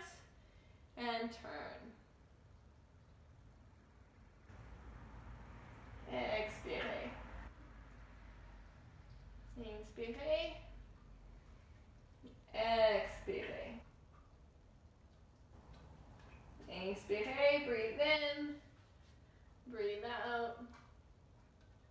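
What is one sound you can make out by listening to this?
A woman speaks calmly and slowly, close by, in short phrases with pauses.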